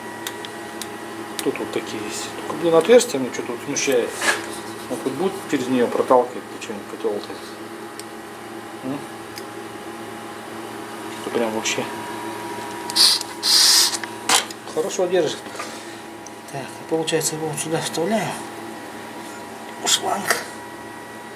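Metal parts click and clatter close by.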